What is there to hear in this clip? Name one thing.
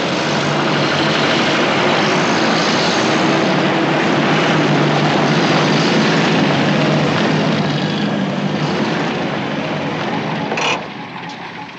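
Engines of several vehicles rumble steadily.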